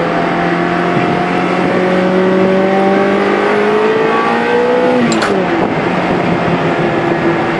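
A car engine drones steadily from inside the cabin, slowly rising in pitch and then dropping as the gear changes.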